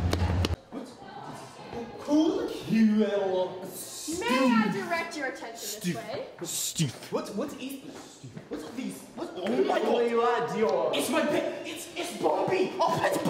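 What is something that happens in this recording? Teenagers talk excitedly close by.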